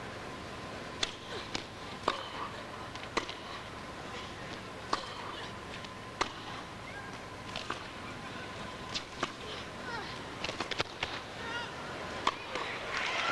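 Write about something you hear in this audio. Tennis balls are struck sharply back and forth in a rally.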